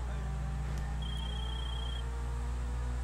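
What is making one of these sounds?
A phone rings with a short electronic trill.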